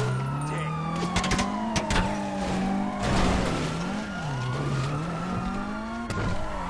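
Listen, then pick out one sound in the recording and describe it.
A car engine revs steadily, rising and falling in pitch.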